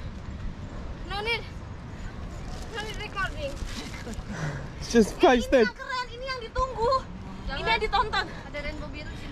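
Voices call out from a short distance outdoors.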